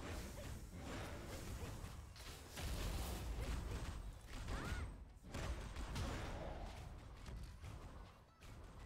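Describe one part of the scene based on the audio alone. Weapons clash and explosions burst in a fast, loud fight.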